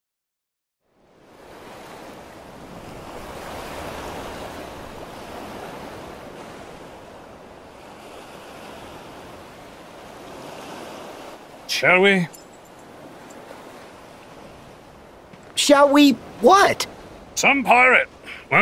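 Waves wash gently onto a shore outdoors.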